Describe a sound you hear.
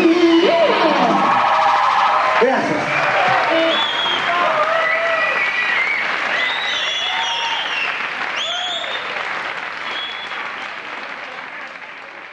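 An electric guitar plays.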